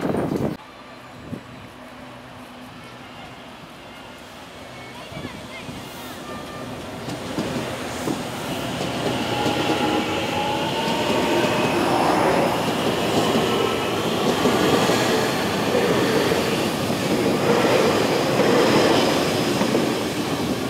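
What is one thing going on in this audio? A train approaches and rolls past with a growing rumble.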